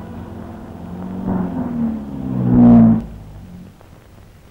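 A car engine rumbles.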